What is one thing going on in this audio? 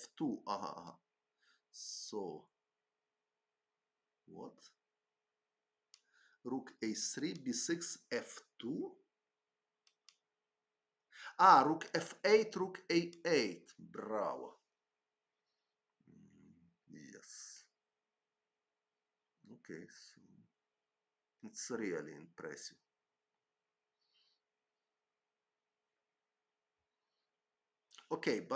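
An elderly man talks calmly into a microphone, in short bursts with pauses.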